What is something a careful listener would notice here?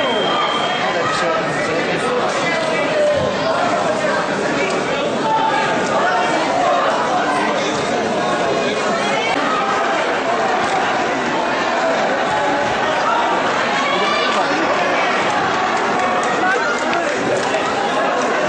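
A crowd of people talk and shout loudly throughout an echoing hall.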